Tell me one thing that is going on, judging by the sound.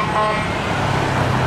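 A police siren gives a short blare.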